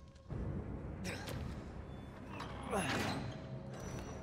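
A heavy metal lever is pulled down with a clanking grind.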